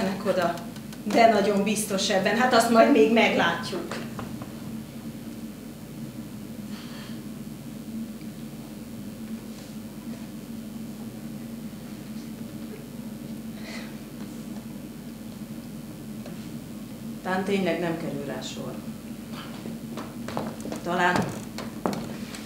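A woman speaks expressively in a small room, heard from a short distance.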